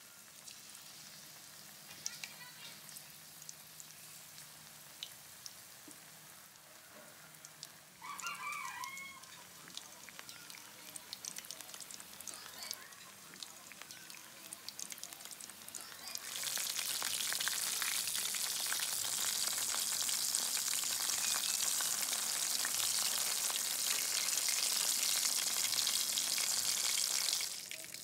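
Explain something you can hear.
Oil sizzles and bubbles loudly as food deep-fries.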